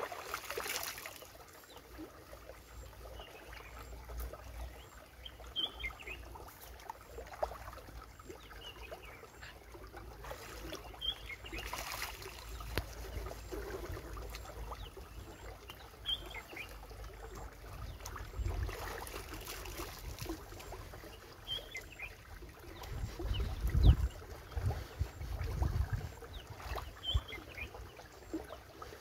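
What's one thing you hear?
Water splashes as a person washes in a shallow stream.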